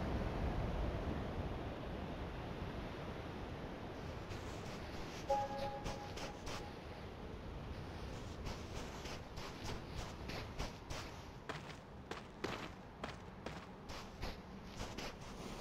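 Gentle ocean waves wash against a shore.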